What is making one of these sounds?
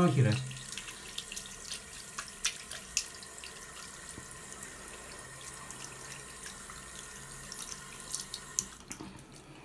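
A metal tap creaks and clicks as a hand swivels it back and forth.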